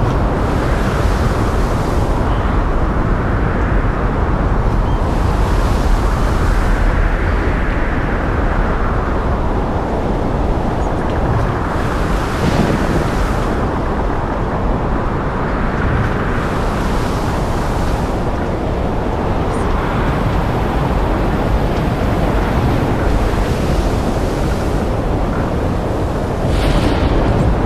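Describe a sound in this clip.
Rough sea water churns and crashes against a ship.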